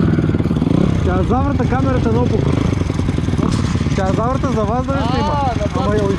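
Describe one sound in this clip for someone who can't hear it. Other dirt bike engines whine and rev nearby.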